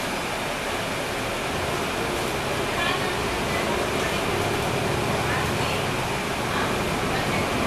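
A bus engine rumbles steadily while the bus drives along.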